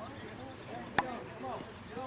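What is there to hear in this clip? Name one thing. A softball bat hits a ball outdoors with a sharp crack.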